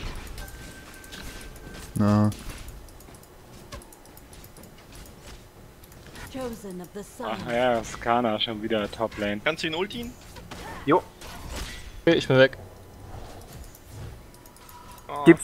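Magic spells whoosh and zap in a fantasy battle.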